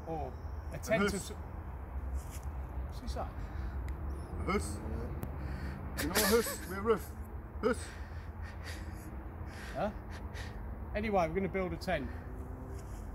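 A man talks with animation close by, outdoors.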